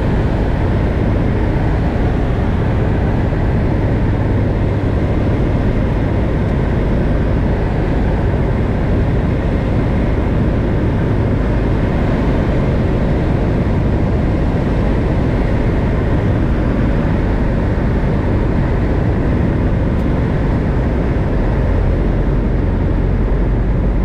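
A small plane's propeller engine drones loudly and steadily from inside the cockpit.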